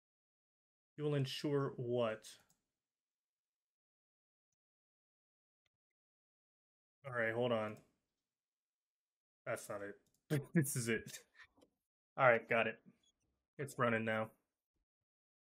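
A man talks into a close microphone in short bursts, with pauses.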